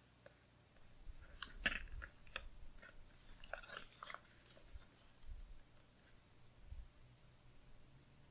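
Hands rub and press on paper.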